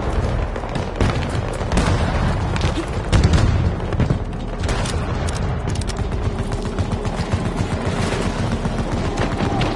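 Gunshots crack in the distance in short bursts.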